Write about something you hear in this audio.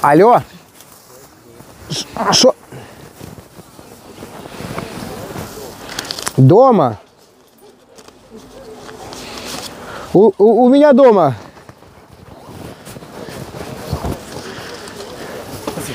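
People chatter quietly in the background outdoors.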